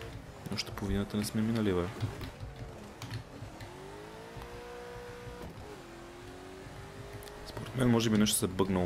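A sports car engine revs and roars, rising and falling in pitch.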